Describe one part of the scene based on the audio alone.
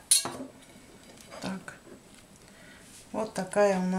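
A china plate clinks as it is picked up.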